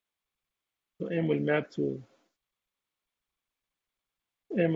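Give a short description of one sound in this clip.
A man speaks calmly through a microphone, in short phrases.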